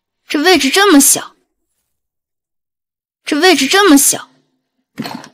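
A young woman speaks in a close, irritated tone.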